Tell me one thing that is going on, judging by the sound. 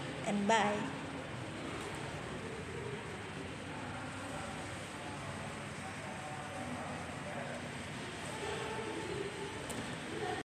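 A young woman speaks softly and calmly close to a microphone.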